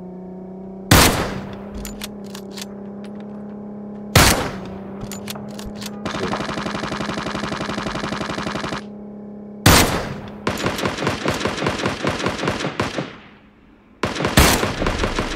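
A sniper rifle fires loud single shots that echo away.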